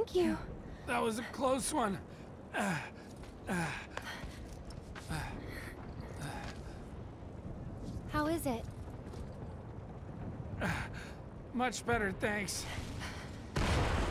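A young man speaks cheerfully, close by.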